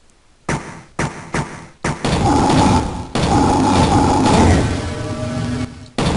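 A game gun fires rapid shots that bang and echo.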